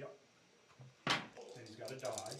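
A hand sets something down on a table with a soft knock.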